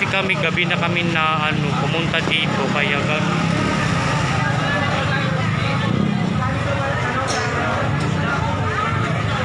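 A large crowd murmurs and chatters in the background.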